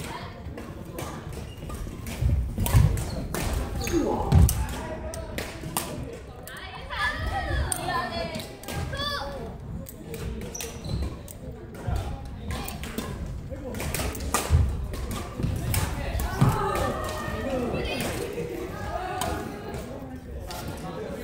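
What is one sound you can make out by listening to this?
Badminton rackets strike shuttlecocks with sharp pops.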